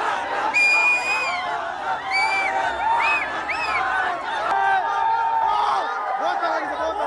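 A crowd of young men shouts and cheers loudly close by.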